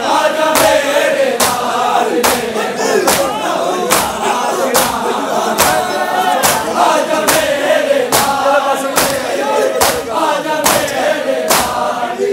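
A large crowd beats their chests in a steady rhythm, loud sharp slaps about every second.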